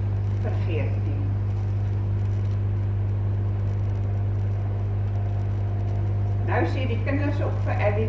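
An elderly woman speaks into a microphone.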